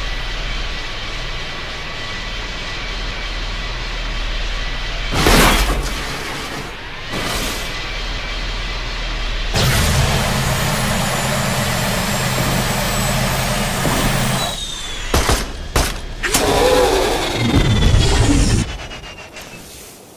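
A hovering vehicle's engine hums steadily.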